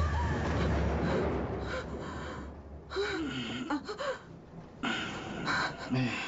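A young woman gasps softly close by.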